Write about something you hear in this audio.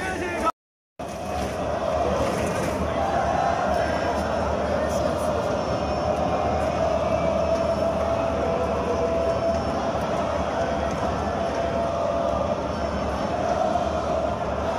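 A large crowd roars and cheers steadily in an open stadium.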